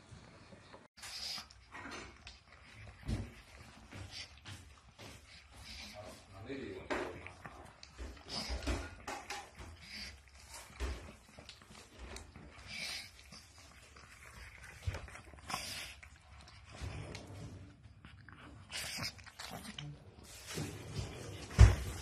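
A dog laps and chews noisily from a bowl.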